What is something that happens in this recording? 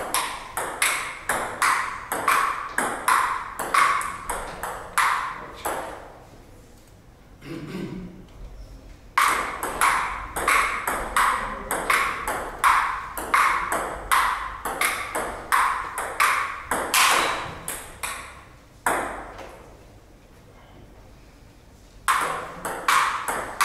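A ping-pong ball clicks rapidly back and forth off paddles and a table in a quick rally.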